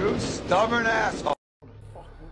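A man speaks close up with animation.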